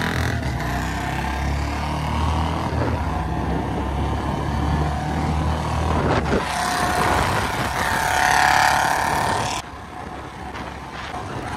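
A motorcycle engine rumbles steadily at close range.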